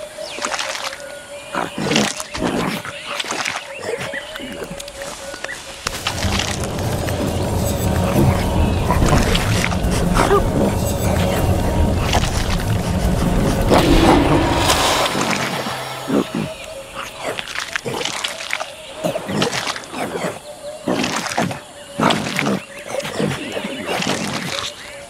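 A chimpanzee munches noisily on fruit.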